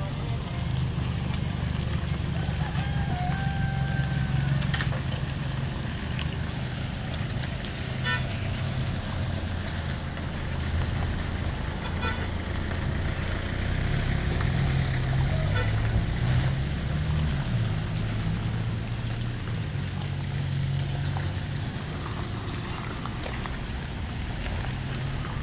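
Tyres roll slowly through mud and puddles.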